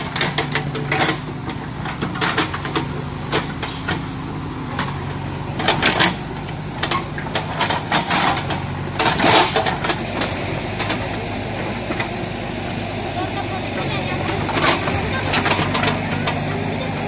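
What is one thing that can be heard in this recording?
A backhoe's bucket scrapes and knocks against soil and rocks.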